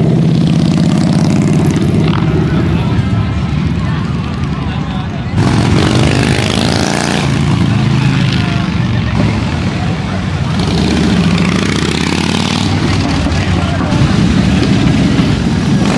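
Motorcycle engines rumble deeply and rev as bikes ride past.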